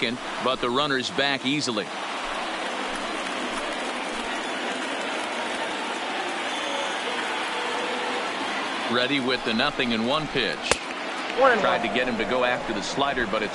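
A large crowd murmurs steadily.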